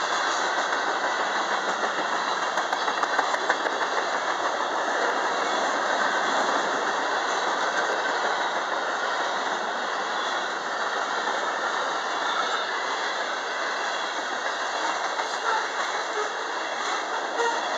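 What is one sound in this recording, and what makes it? A freight train rumbles steadily past close by.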